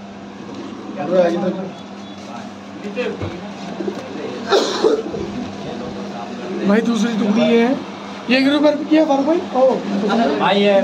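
Pigeons coo close by.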